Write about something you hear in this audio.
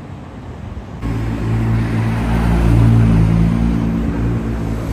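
A sports car engine roars loudly and rumbles as it drives off.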